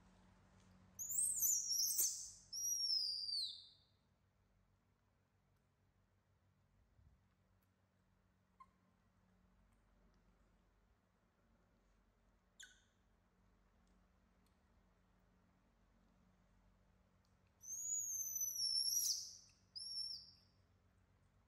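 A baby macaque squeals in high-pitched cries.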